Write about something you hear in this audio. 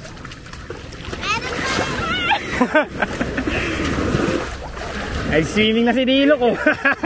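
Small waves wash and lap onto a sandy shore.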